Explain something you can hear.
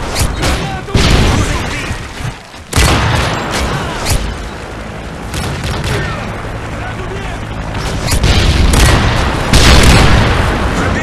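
A sniper rifle fires sharp, loud shots.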